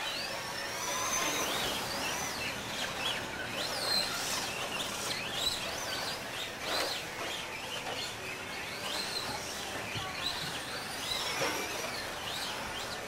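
Toy car tyres scratch over dirt.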